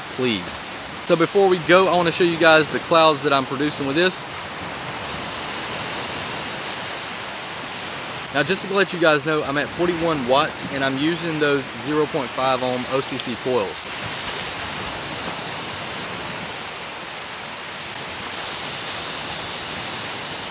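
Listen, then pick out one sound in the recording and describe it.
Waves wash onto a beach in a steady hiss.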